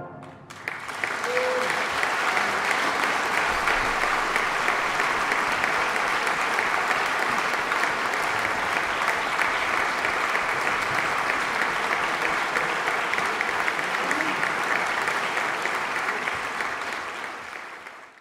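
A large audience applauds loudly in a large hall.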